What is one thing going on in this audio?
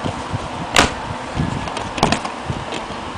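A plastic disc case clicks open and snaps shut.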